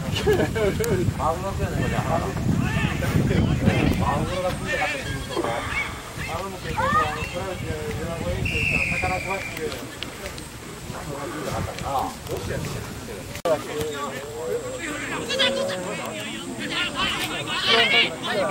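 Male players shout and call out to each other outdoors on an open field.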